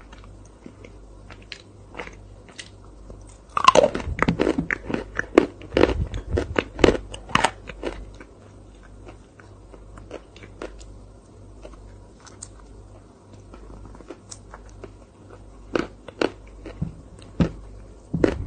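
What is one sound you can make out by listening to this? A young woman eats with soft, wet mouth sounds up close.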